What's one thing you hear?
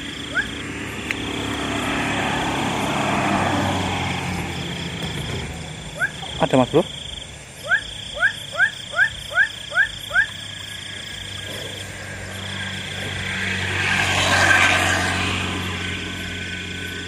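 Grass and leaves rustle as a man moves through them.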